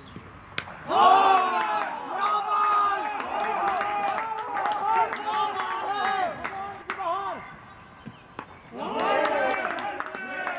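Men shout and call out excitedly outdoors.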